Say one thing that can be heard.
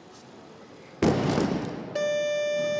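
A heavy barbell crashes down onto a wooden platform.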